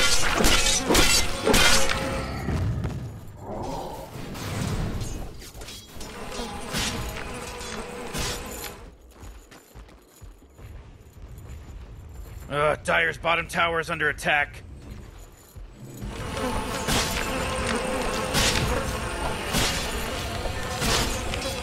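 Game combat effects clash and crackle with sharp hits.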